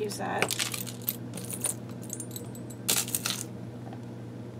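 Hands rummage through a plastic box of small trinkets.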